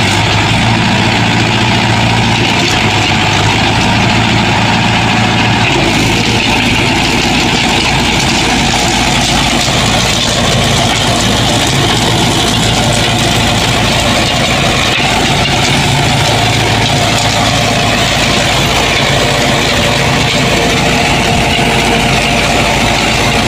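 A tractor engine runs steadily nearby.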